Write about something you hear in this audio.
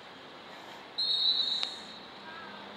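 A referee's whistle blows a short, shrill blast.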